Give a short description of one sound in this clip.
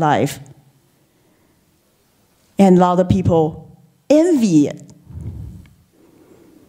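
A middle-aged woman speaks with animation through a microphone.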